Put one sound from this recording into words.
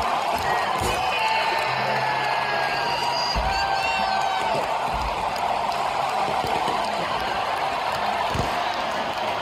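Fireworks bang overhead.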